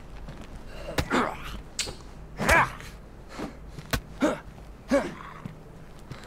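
A man groans and snarls close by.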